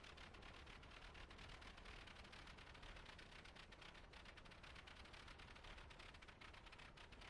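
A propeller engine drones steadily with a rapid chugging beat.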